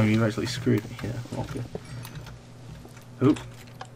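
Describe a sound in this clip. A pickaxe digs through wooden blocks with short crunches.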